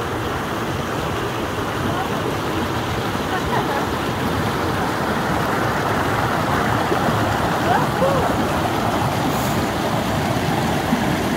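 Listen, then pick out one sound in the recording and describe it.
A shallow stream splashes and gurgles over rocks close by.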